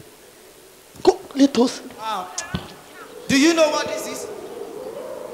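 A young man speaks into a microphone over loudspeakers.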